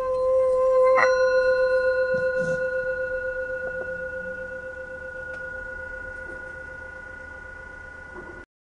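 A stick strikes a singing bowl once, and the bowl rings out and slowly fades.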